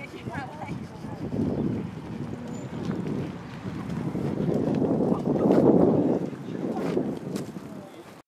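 A manual wheelchair rolls over concrete.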